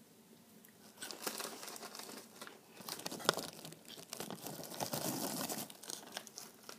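A plastic snack wrapper crinkles.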